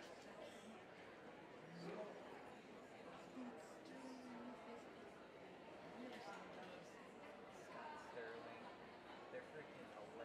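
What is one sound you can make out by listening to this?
Many people murmur and chatter quietly in a large hall.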